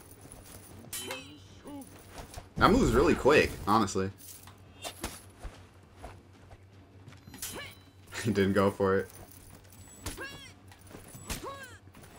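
Metal blades clash and clang in a fight.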